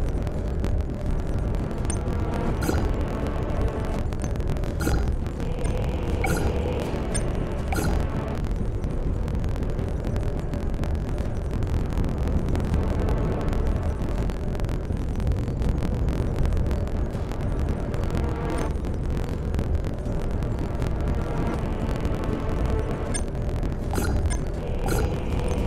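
Electronic beeps chime as buttons on a video game's control panel are pressed.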